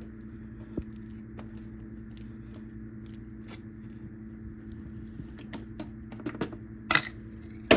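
A metal spoon scrapes and clinks against a foil pan.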